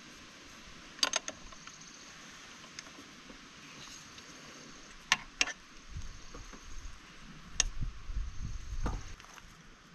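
A metal wrench clicks and clinks against a bicycle pedal.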